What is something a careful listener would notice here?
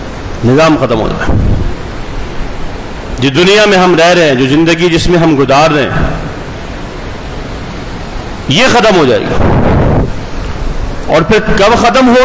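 A man speaks calmly and earnestly into a close microphone.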